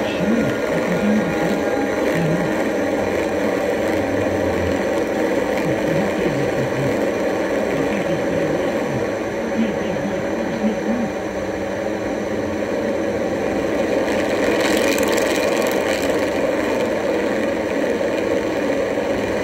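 A synthesizer plays a steady, warbling electronic drone through small speakers.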